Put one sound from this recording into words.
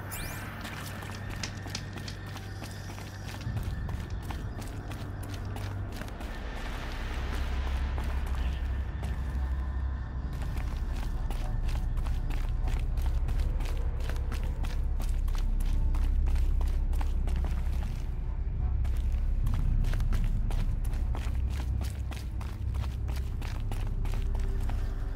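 Footsteps crunch on snow at a steady walking pace.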